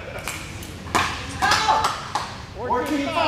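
A paddle strikes a ball with sharp pops.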